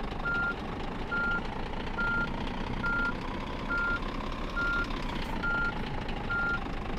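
A truck's reversing alarm beeps.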